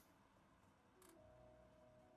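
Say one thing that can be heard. A menu opens with a soft click.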